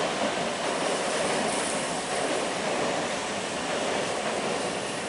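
An electric train rumbles slowly out along the tracks.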